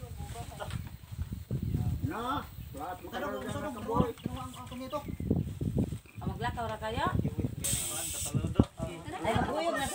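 Several men and women talk and call out nearby outdoors.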